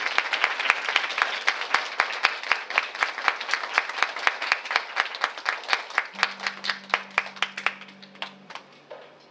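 An electric guitar plays through an amplifier.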